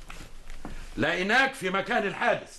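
A man speaks with emphasis.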